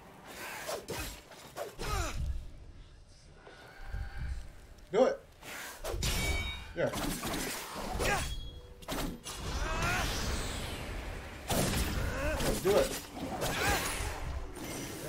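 Swords swish and clash.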